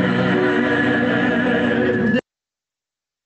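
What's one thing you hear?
A choir of men and women sings together over an online call.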